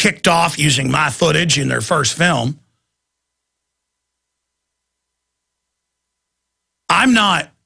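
A middle-aged man speaks with animation into a close microphone.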